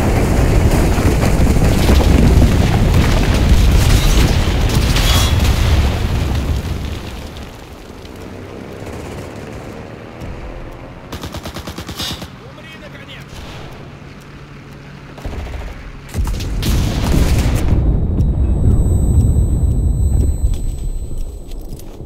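Heavy explosions boom and rumble close by.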